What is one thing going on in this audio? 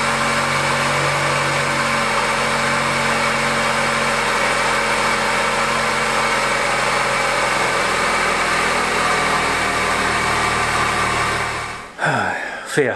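A car engine idles steadily up close.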